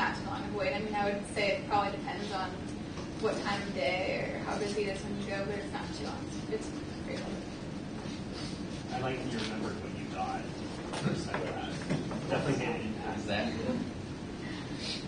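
A young woman speaks calmly to a room, a little distant and echoing slightly.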